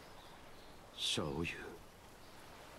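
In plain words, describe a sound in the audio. A young man says a short word in a low, calm voice.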